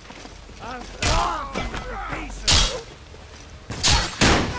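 Weapons strike in a melee fight.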